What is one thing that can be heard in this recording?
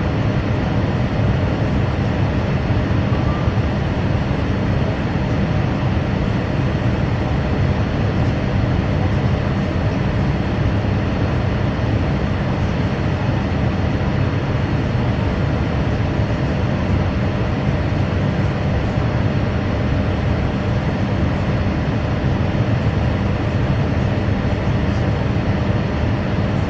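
An aircraft engine drones steadily throughout.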